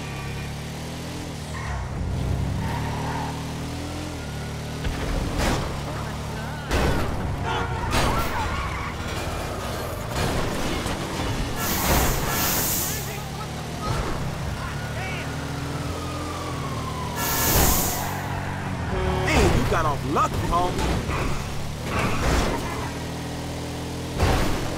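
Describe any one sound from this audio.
A racing car engine roars steadily, rising and falling in pitch as it shifts gears.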